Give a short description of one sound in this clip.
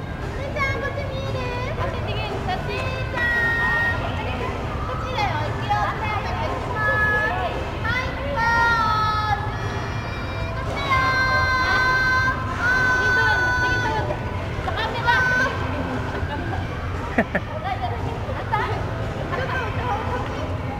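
A woman talks warmly to a young child nearby.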